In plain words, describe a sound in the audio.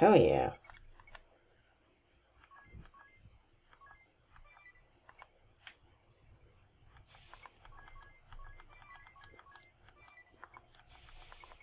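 Short electronic menu blips tick now and then.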